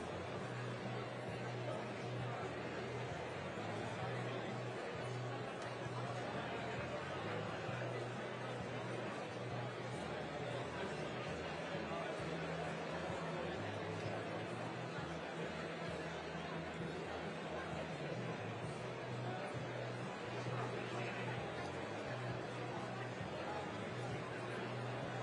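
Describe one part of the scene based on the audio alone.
A large audience chatters and murmurs throughout a big echoing hall.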